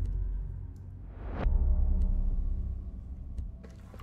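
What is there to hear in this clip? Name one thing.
A short whooshing alert chime sounds.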